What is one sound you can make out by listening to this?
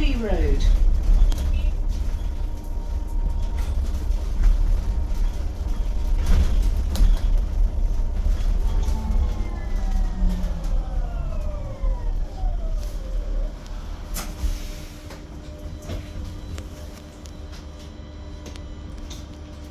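Loose fittings inside a bus rattle and knock now and then.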